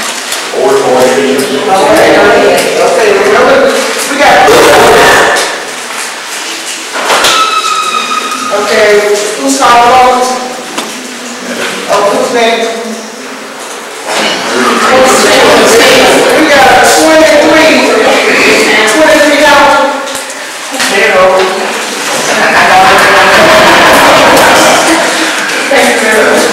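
A woman speaks into a microphone, heard through a loudspeaker in a room.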